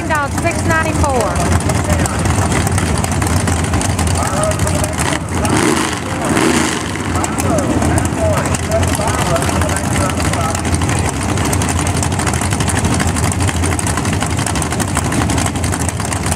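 A race car engine idles loudly with a rough, lumpy rumble.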